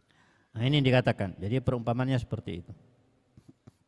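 A man chants into a microphone in a drawn-out, melodic voice.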